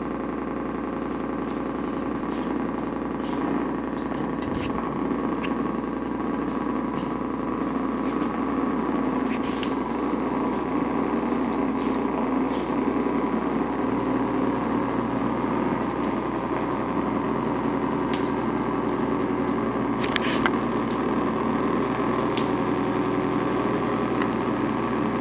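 Sharp electronic clicks and crackles pop now and then over the drone.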